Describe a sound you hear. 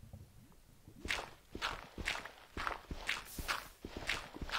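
A shovel crunches into loose ground in quick, repeated blows.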